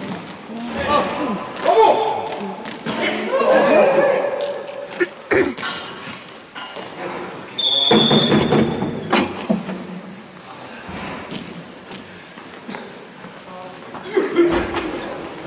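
Hockey sticks clack against a ball on a hard floor.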